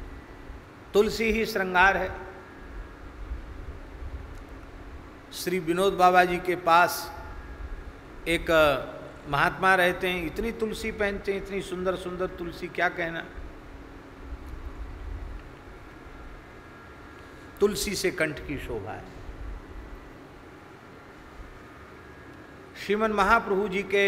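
An elderly man speaks with animation into a microphone, in short bursts with pauses.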